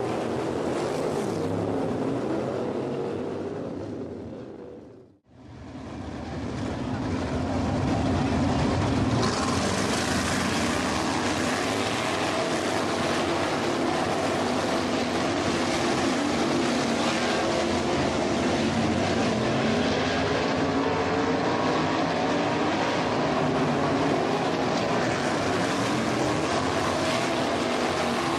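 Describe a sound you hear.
Racing car engines roar loudly as cars speed around a dirt track.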